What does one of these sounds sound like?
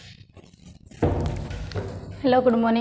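A woman speaks in a room with an echo.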